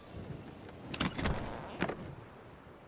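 A metal chest lid clanks open.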